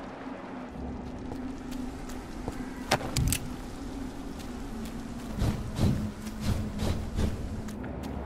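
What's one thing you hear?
Footsteps fall on cobblestones.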